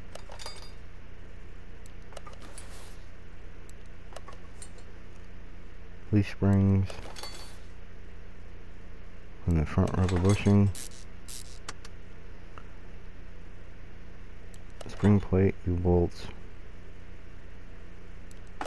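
Metal car parts clink and click into place.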